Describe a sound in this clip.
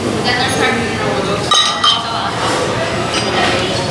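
Glass bottles clink together in a toast.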